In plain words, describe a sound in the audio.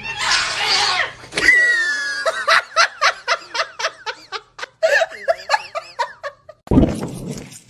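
A young man shouts with animation.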